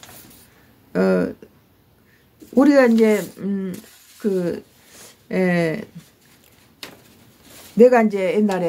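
An elderly woman speaks slowly in drawn-out phrases, close by.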